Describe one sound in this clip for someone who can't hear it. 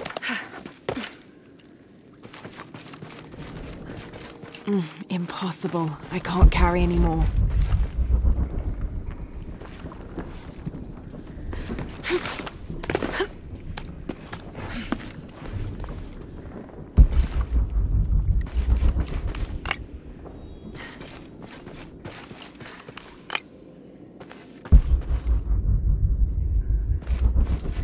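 Footsteps scuff and crunch on rocky ground.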